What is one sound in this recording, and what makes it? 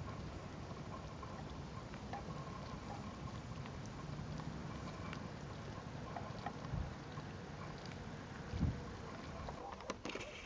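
Gulls call faintly over the water.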